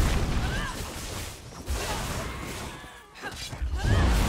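Magic blasts and impacts crash during a fight.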